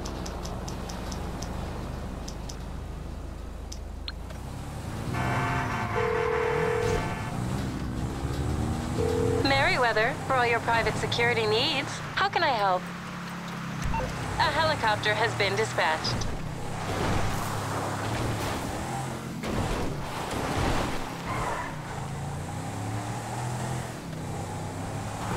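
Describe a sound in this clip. A car engine hums steadily as a car drives.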